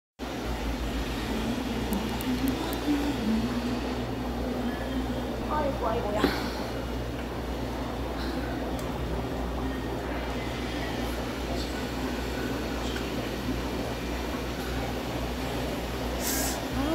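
An aquarium pump hums low and steady.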